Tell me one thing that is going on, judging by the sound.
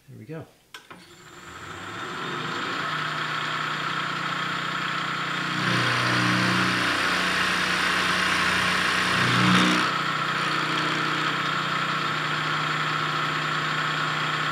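A milling machine motor spins up and runs with a steady whine.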